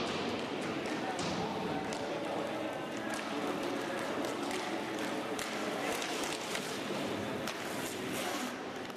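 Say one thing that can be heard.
Skate wheels roll and scrape across a hard floor.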